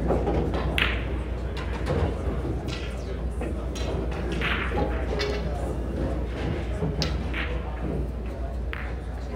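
A low murmur of voices fills a large echoing hall.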